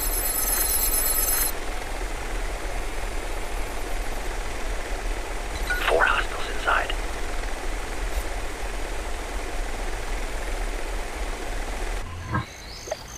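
A small drone hums steadily as it hovers.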